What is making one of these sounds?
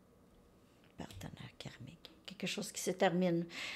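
A middle-aged woman speaks calmly, close to the microphone.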